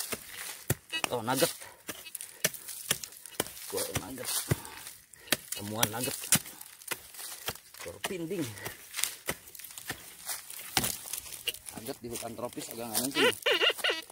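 Dry grass rustles and crackles underfoot.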